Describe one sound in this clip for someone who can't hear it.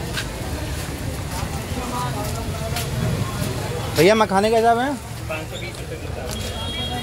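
Street noise murmurs steadily outdoors.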